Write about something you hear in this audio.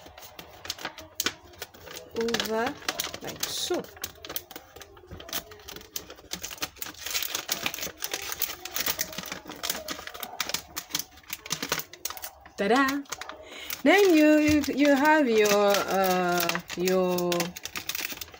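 Paper rustles and crinkles as it is folded and wrapped.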